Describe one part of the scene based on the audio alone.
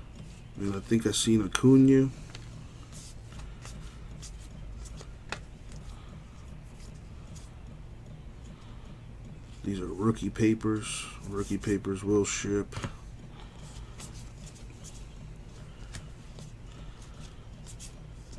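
Trading cards rustle and slide against each other as they are flipped through by hand.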